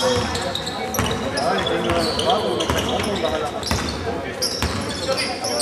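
A basketball bounces with hollow thuds in a large echoing hall.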